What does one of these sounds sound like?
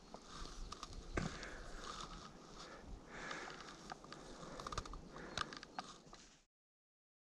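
A fishing reel clicks as it is handled.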